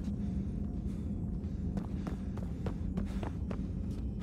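Footsteps tap lightly on a hard floor.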